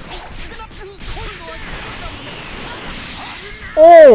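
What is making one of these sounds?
Punches and kicks thud in rapid bursts.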